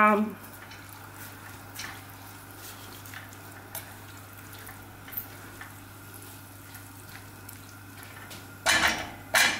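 A plastic spoon stirs food and scrapes softly in a pan.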